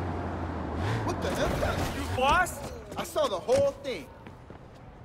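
A car crashes into objects with loud knocks.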